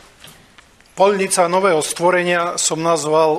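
An older man speaks calmly, close to a microphone.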